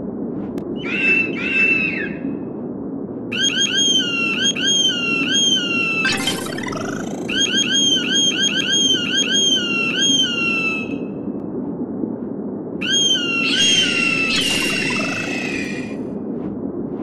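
An eagle screeches again and again in sharp, falling cries.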